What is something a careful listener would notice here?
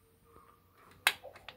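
A button on a washing machine clicks.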